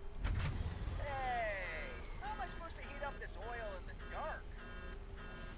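A small robot chirps and beeps in quick rising and falling tones.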